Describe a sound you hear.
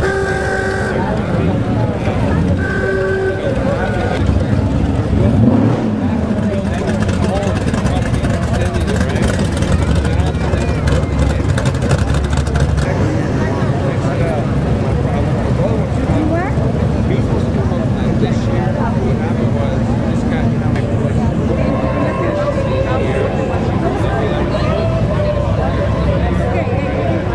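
Classic car engines rumble deeply as they drive slowly past.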